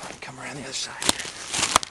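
An animal scurries quickly past through rustling undergrowth.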